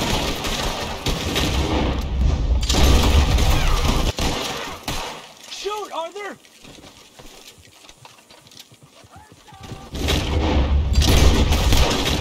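Rifle shots crack in a gunfight outdoors.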